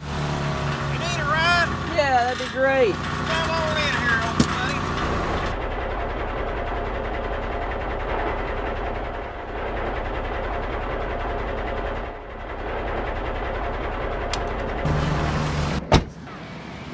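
A pickup truck engine idles with a low rumble nearby.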